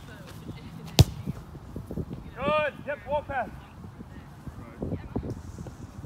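A soccer ball is kicked with a dull thud outdoors.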